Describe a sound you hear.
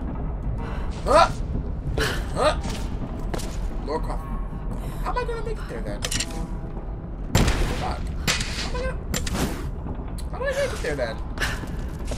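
A young woman grunts and gasps with effort.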